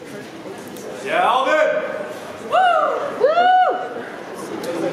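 Young performers sing out in short rising and falling calls.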